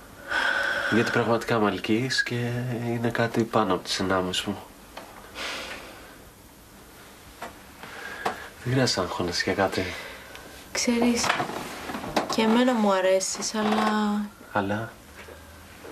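A young man talks intently, close by.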